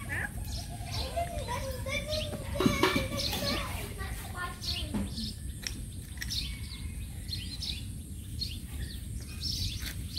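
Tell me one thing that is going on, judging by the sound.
A dog licks and nibbles at its paw close by.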